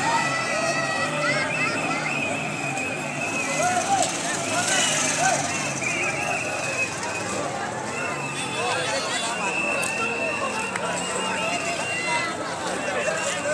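A large crowd of men and women talks and shouts outdoors.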